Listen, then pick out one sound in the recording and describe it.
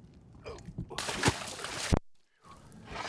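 A large fish splashes into water.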